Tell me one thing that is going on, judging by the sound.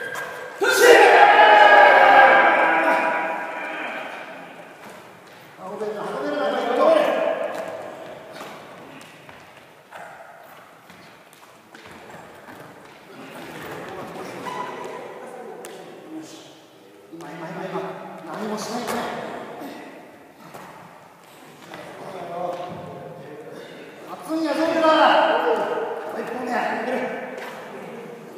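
A group of men shout in rhythmic bursts while straining, echoing in a large hall.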